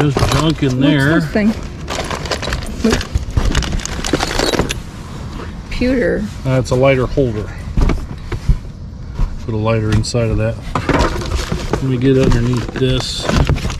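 Plastic wrappers rustle and crinkle.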